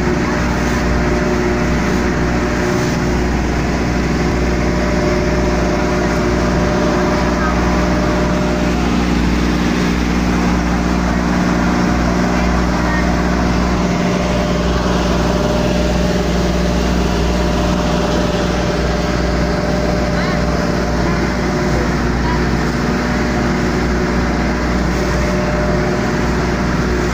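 A boat engine drones steadily and loudly up close.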